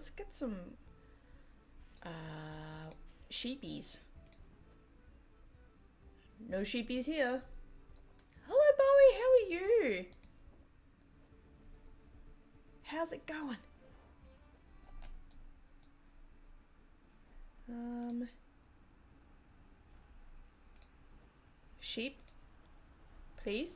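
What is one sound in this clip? A young woman speaks calmly into a close microphone, in short bursts with pauses.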